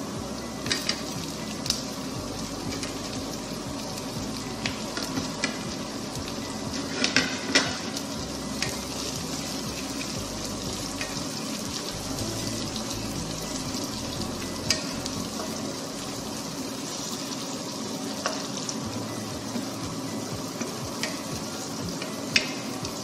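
A wooden spatula clicks and scrapes against a pan.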